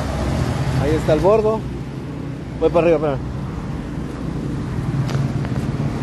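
A bus engine rumbles close by.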